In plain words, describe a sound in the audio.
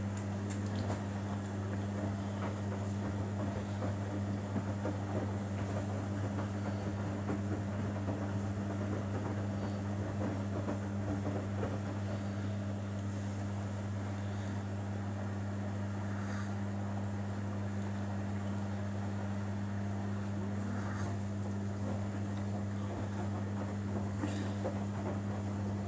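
A front-loading washing machine's motor hums.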